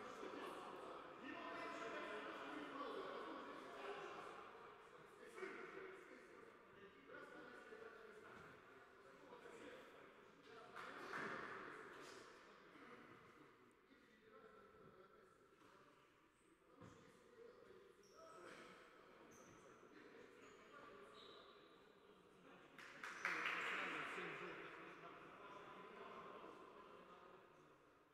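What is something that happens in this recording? Young men talk and call out to each other in a large echoing hall.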